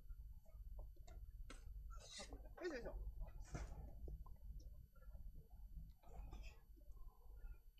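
Punches thud against padded mitts.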